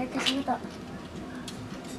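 A young girl speaks briefly nearby.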